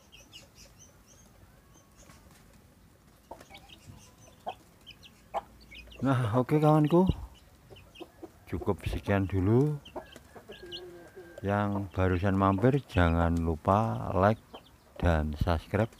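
Chicks peep softly.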